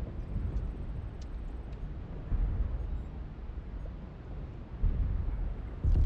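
Heavy metallic footsteps of a giant walking robot thud and rumble low.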